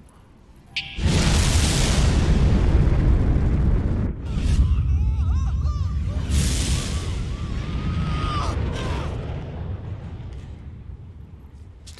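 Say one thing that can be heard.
Stone crumbles with a deep rumbling roar that slowly fades.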